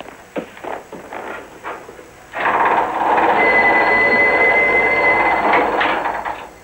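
Fabric rustles as laundry is pushed into a machine.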